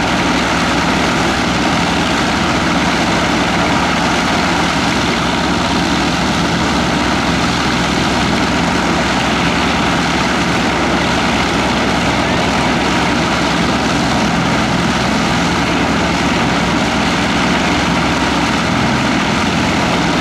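A propeller aircraft engine idles with a loud, steady roar close by.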